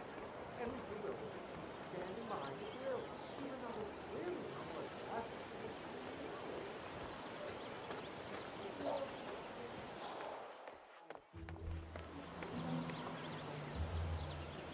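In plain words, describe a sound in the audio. Footsteps tap on pavement and wooden steps.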